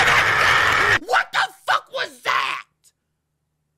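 A man shouts in frustration close to a microphone.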